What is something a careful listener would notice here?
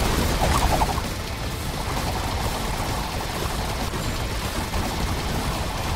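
Explosions boom low and heavy.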